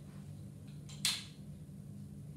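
A strap buckle clicks shut.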